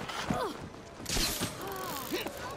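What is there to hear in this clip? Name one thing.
A rope launcher fires with a sharp whoosh.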